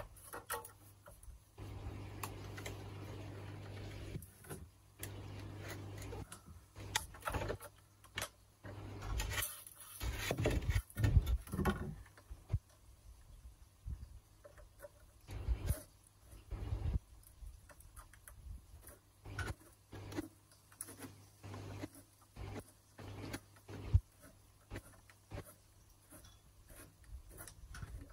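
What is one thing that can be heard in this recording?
Plastic parts of a water filter housing knock and click as a man handles the fittings.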